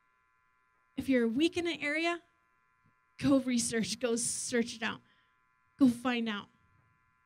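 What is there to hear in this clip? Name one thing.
A woman speaks with animation into a microphone, heard through loudspeakers in a large room.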